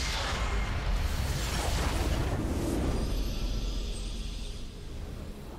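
A huge explosion booms and rumbles, then slowly fades.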